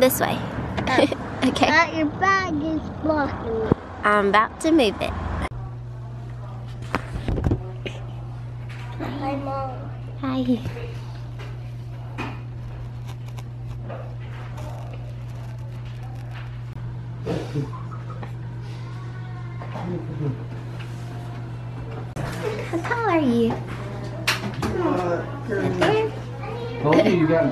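A young girl talks close by in a small, high voice.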